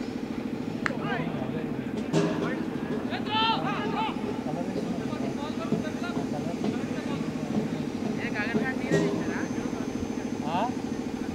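Men shout and call out outdoors across an open field.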